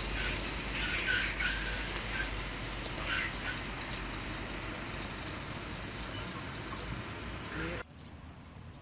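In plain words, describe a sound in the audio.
A crowd of men murmurs at a distance outdoors.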